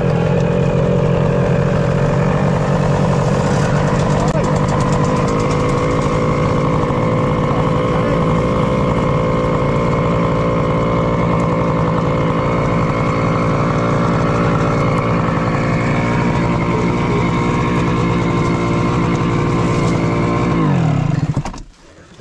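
A motorcycle engine idles steadily close by, then cuts out.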